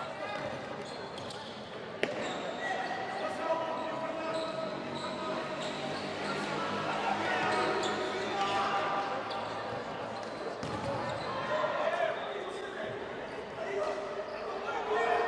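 Sneakers squeak on a hard indoor court.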